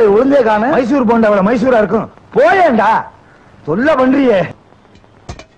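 A man speaks in a loud, sing-song voice.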